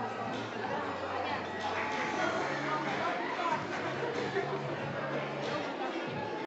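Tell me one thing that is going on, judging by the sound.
A crowd of women chatter and talk over one another in a room.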